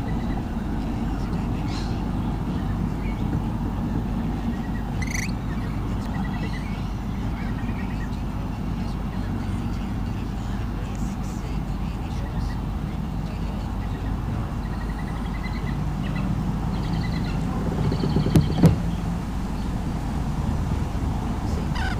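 Young birds of prey chirp and squeal in short, high calls.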